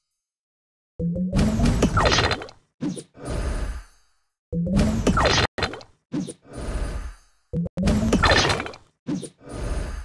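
Game sound effects chime and whoosh as tiles are matched and cleared.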